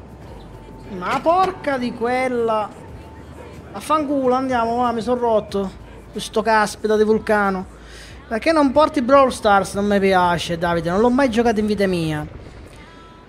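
A young man talks animatedly and close to a microphone.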